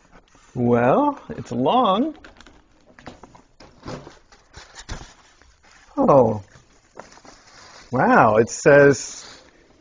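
Wrapping paper crinkles and tears.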